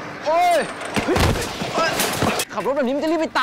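A bicycle crashes to the ground with a clatter.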